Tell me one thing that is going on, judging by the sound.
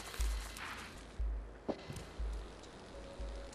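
A cat lands with a soft thump.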